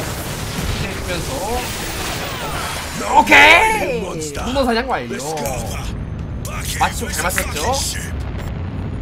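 A young man talks and laughs excitedly into a close microphone.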